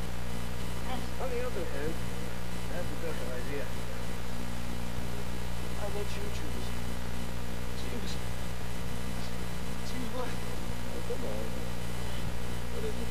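A man speaks calmly and quietly.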